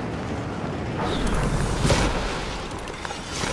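A glider snaps open with a whoosh.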